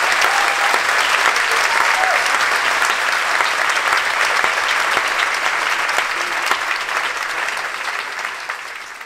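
A large audience applauds and cheers, slowly fading out.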